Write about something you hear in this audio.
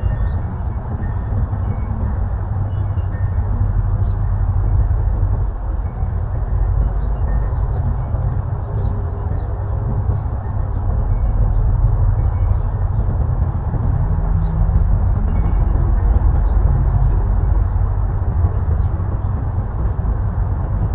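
Wind blows steadily outdoors, rumbling against the microphone.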